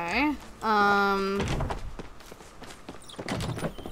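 Footsteps patter quickly across wooden boards.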